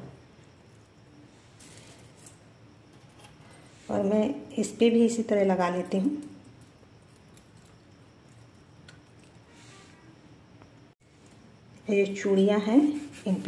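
Metal jewellery chains jingle softly as hands handle them.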